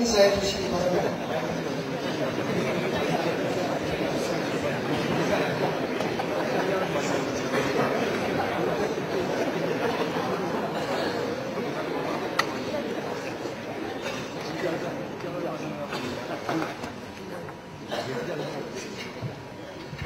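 A crowd of men murmurs and chatters.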